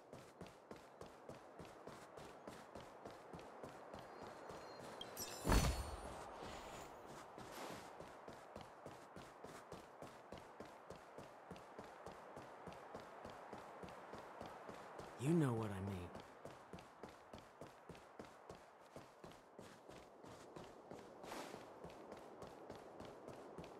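Quick footsteps patter steadily on stone as a game character runs.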